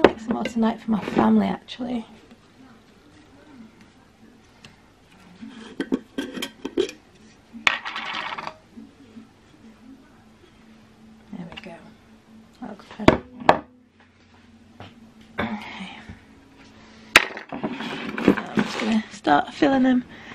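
Glass jars clink against each other on a hard surface.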